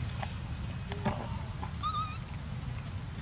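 A baby monkey squeaks softly.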